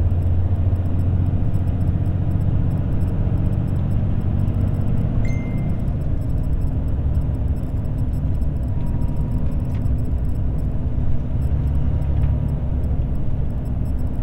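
A vehicle's engine drones steadily as it drives along a road.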